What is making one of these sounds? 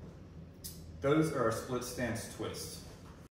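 A young man speaks calmly and clearly, close by.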